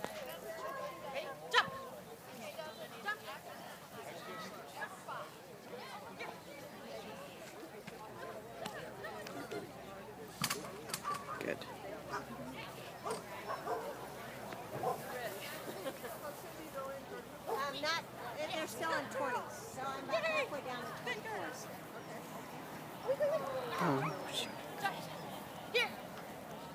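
A handler calls out to a dog.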